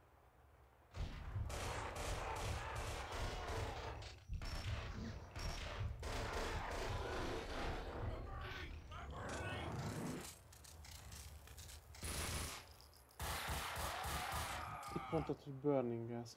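Pistols fire rapid gunshots that echo.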